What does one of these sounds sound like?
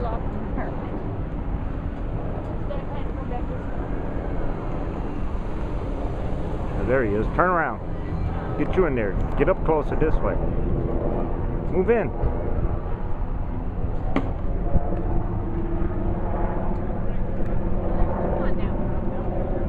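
A small motor drones overhead.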